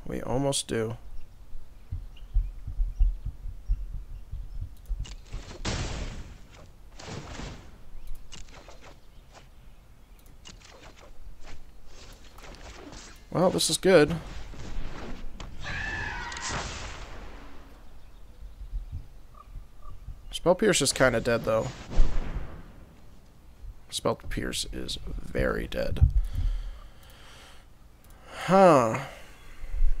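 A young man talks calmly into a close microphone, in short bursts.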